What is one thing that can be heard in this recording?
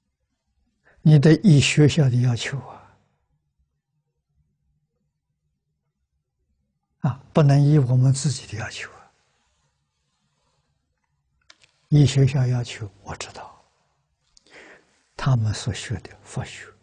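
An elderly man speaks calmly into a close microphone, in short phrases with pauses.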